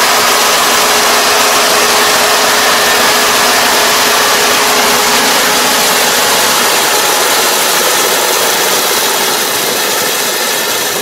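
A combine harvester engine roars close by, then slowly fades as it moves away.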